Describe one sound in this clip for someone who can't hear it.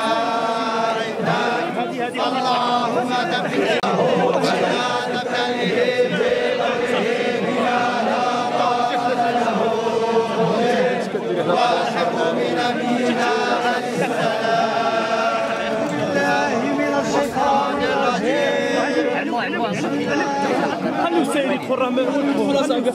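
A large crowd of men chants loudly together outdoors.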